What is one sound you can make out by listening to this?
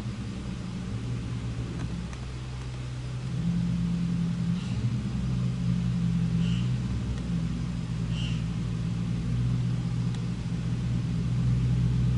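A car engine rumbles deeply as it drives slowly closer.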